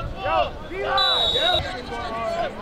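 A referee's whistle blows briefly.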